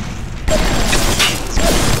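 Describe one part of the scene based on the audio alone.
Electricity crackles and snaps.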